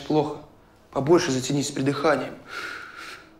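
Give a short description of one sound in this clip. A second young man answers in conversation.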